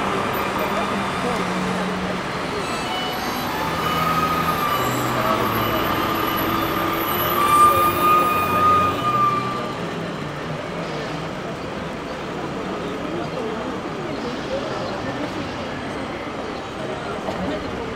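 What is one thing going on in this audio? A crowd of people murmurs and chatters on a busy street outdoors.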